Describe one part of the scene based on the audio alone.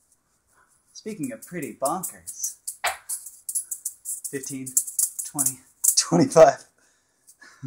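Beaded balls rattle and clack as they are tossed and caught.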